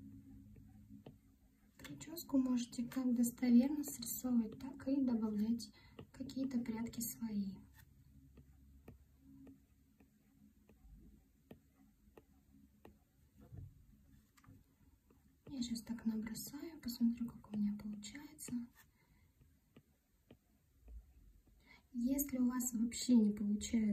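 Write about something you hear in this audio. A stylus taps and scratches softly on a glass surface.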